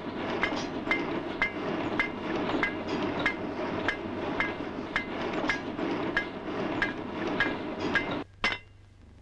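A hammer clinks steadily on metal.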